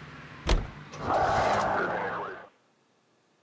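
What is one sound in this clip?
A car drives off with a rising engine roar.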